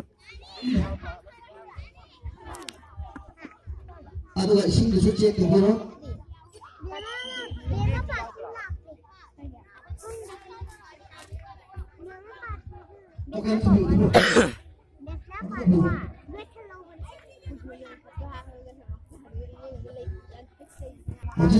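Men and women chat and call out nearby outdoors.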